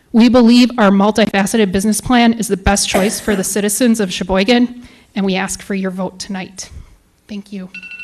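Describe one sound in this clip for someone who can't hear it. A woman reads aloud calmly into a microphone.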